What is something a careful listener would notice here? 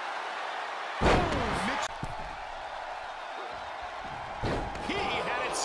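A body slams heavily onto a wrestling ring with a loud thud.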